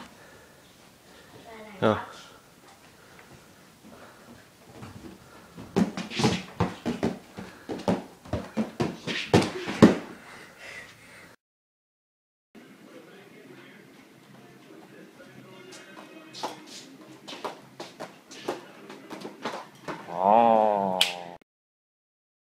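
Feet and hands thump and slide on a wooden floor.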